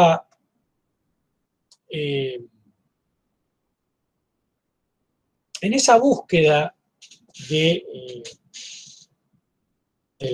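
A middle-aged man speaks calmly in short phrases over an online call.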